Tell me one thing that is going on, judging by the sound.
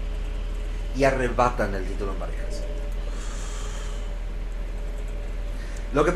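A young man talks close to a microphone in a calm, conversational way.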